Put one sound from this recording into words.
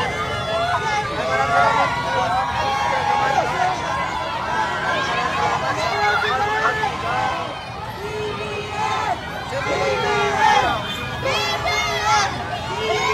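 A large crowd cheers and shouts excitedly outdoors.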